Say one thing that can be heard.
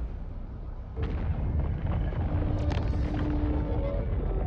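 A deep rushing whoosh swells as a spaceship speeds away.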